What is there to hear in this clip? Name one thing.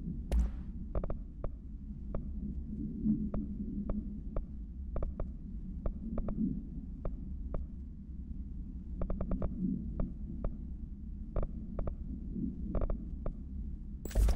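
Short soft menu clicks tick again and again as a selection moves.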